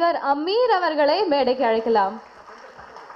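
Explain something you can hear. A woman speaks clearly into a microphone over loudspeakers.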